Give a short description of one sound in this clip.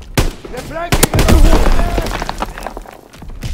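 An explosion booms loudly and rumbles.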